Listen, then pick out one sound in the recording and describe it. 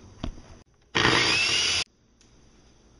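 A blender whirs loudly for a moment.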